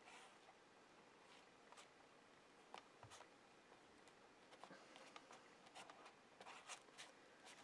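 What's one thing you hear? A sponge dabs and rubs on paper over a stencil.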